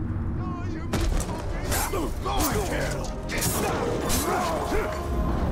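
Metal blades clash and ring in a fight.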